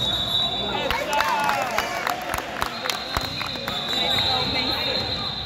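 A basketball thumps as it is dribbled on a hard floor.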